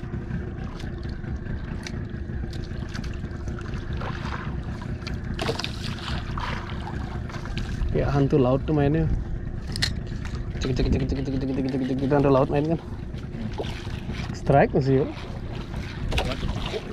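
Water laps against the side of a small boat.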